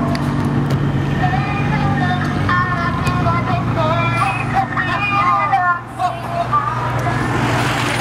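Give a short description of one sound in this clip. A siren wails and warbles as an emergency vehicle passes close by.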